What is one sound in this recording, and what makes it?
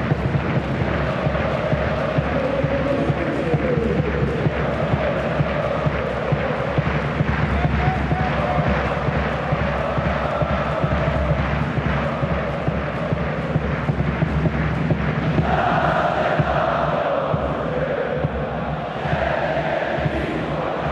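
A large stadium crowd chants and cheers steadily in a big open space.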